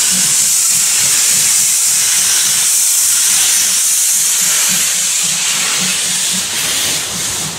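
A steam locomotive chuffs with rhythmic puffs.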